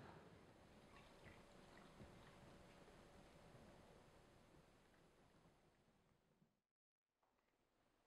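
Juice pours and trickles into a glass.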